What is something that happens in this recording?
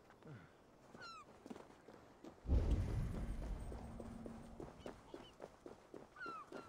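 A bird chirps.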